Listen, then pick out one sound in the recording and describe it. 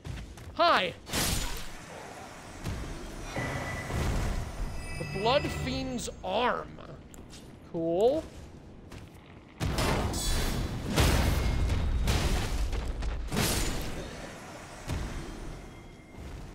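Weapons clash and thud in a game fight.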